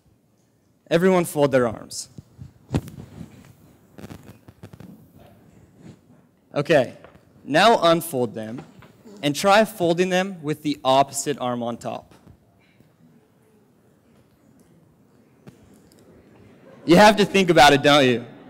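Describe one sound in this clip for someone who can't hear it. A young man speaks with animation into a microphone, in a large hall.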